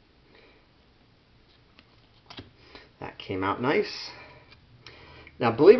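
Stiff cards rustle and tap as a hand shuffles through them.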